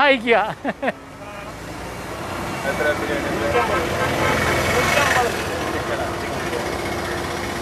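Traffic rumbles past on a road outdoors.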